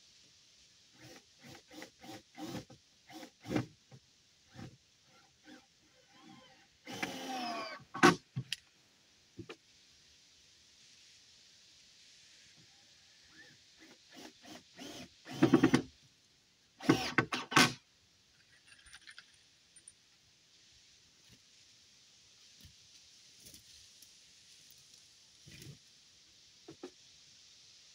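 Wooden boards knock and clatter as a man handles them.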